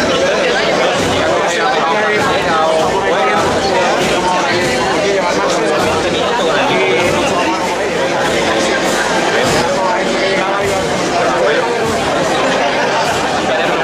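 A large crowd of people chatter close by, outdoors.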